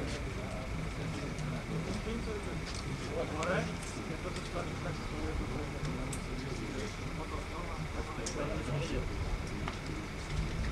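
Several young men chat casually outdoors.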